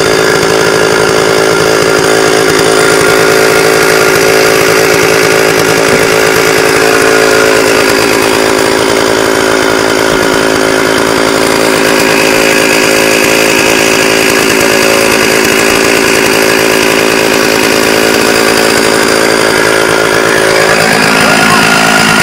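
A chainsaw engine roars loudly and steadily, up close.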